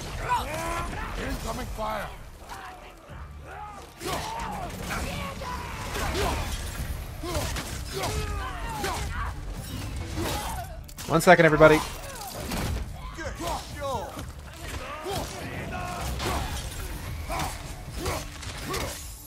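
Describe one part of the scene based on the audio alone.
Heavy weapon blows land with thuds and crunches.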